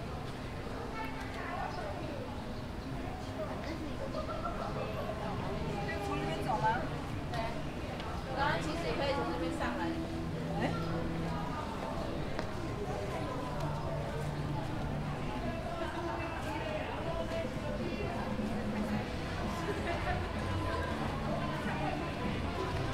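Several men and women chat quietly nearby outdoors.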